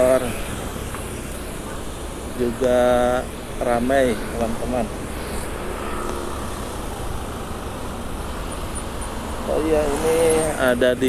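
Motorcycle engines hum steadily in close traffic.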